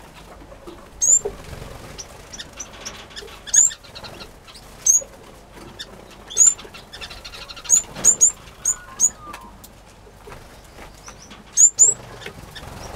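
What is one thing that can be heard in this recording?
Small birds chirp with short, sharp, high calls.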